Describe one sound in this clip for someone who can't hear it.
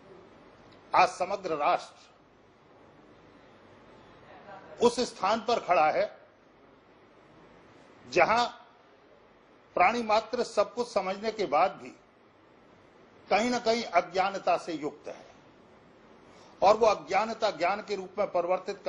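A middle-aged man speaks calmly and with animation into a nearby microphone, in bursts with pauses.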